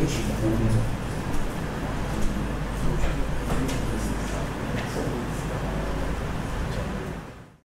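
A man speaks steadily through a microphone in a large room.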